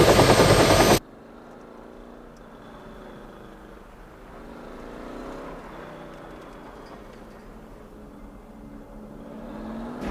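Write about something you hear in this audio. A car engine hums faintly in the distance.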